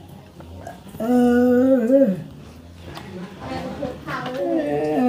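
An elderly man speaks in a strained, drawn-out voice close by.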